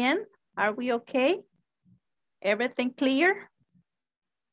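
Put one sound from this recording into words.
A woman speaks clearly over an online call, in short phrases.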